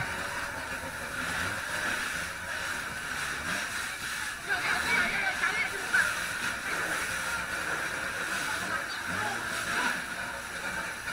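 A fire hose sprays water with a steady, rushing hiss.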